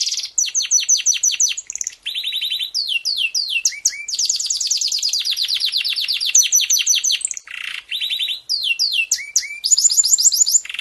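A canary sings a long, fast song of rapid trills, chirps and whistles close by.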